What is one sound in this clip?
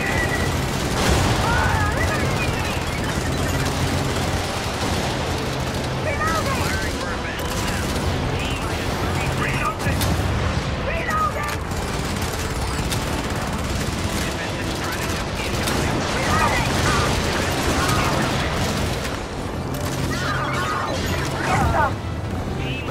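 Explosions boom now and then.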